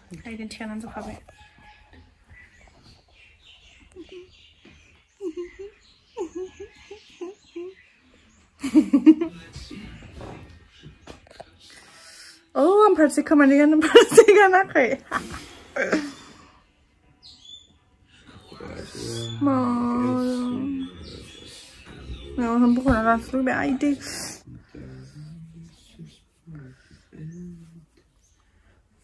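A young woman speaks close by, in short bursts with pauses.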